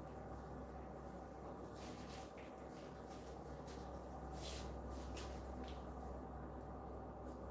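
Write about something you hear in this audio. A brush rustles through hair.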